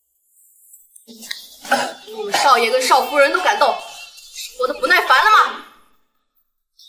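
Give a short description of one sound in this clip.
A young woman speaks sharply, close by.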